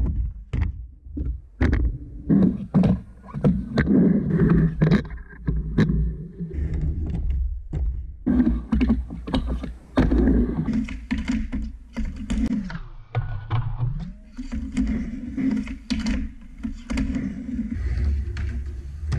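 Skateboard wheels roll and rumble over a wooden ramp.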